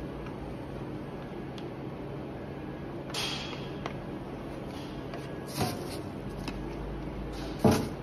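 A scraper scrapes powder from a tin.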